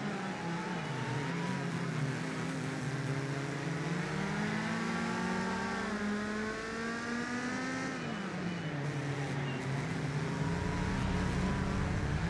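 Tyres screech on tarmac through a corner.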